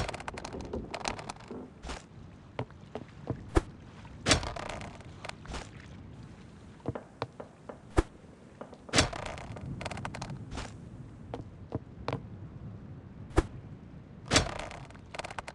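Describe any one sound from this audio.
A hook splashes into water and is pulled back in, again and again.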